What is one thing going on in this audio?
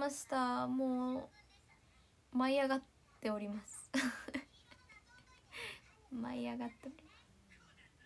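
A young woman talks into a nearby microphone in a lively, cheerful voice.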